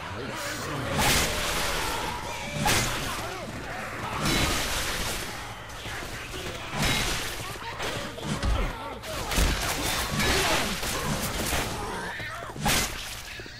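Gunshots ring out in bursts.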